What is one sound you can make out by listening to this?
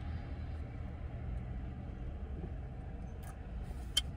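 A young man gulps a drink from a bottle.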